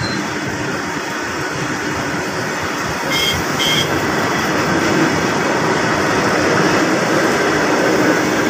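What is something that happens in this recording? A freight train rumbles past close by, its wheels clattering on the rails.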